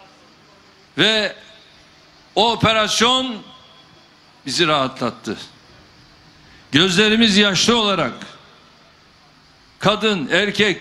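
A man speaks loudly through a microphone in short, forceful bursts with pauses between them.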